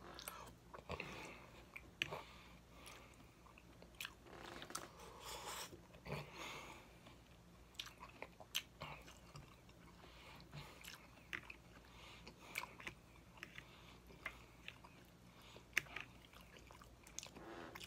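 A man chews food wetly and smacks his lips close to a microphone.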